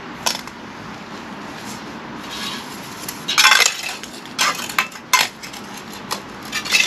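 A steel trowel scrapes and taps mortar on concrete blocks.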